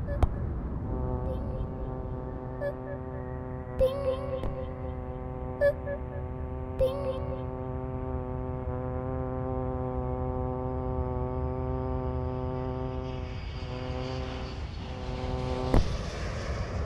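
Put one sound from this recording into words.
A small propeller plane's engine hums steadily.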